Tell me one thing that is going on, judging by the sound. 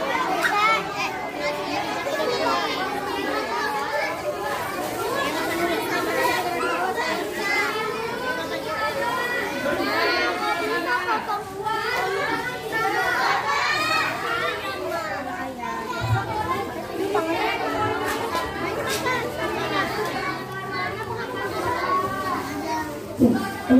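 Many children chatter and call out all around, close by.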